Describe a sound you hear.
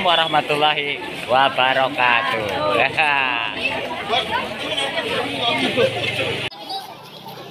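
A man talks cheerfully and close by.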